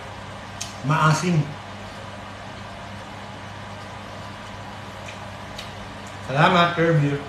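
A young man speaks close by, casually and with animation.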